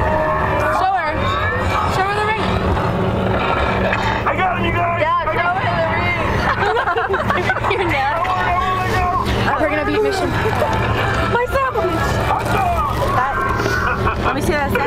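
Young girls talk excitedly close by.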